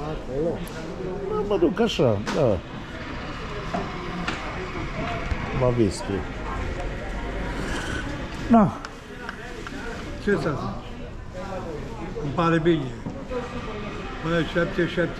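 An elderly man talks calmly.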